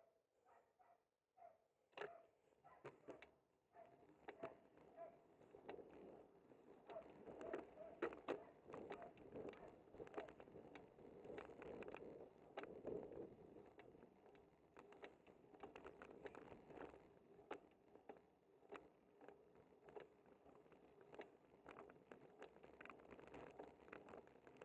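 A bicycle rattles and clicks over bumps in the road.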